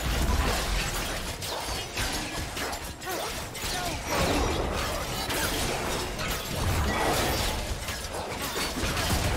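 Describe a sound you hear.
Heavy blows thump against a large monster.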